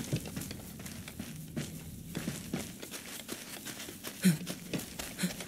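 Footsteps crunch on rocky ground at a steady pace.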